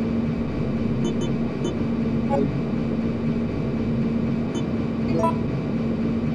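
Short electronic blips sound as menu choices are made.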